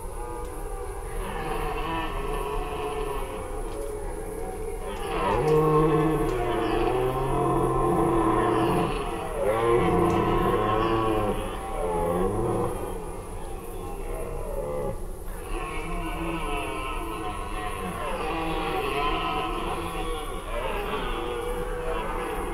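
A red deer stag bellows with deep, drawn-out roars.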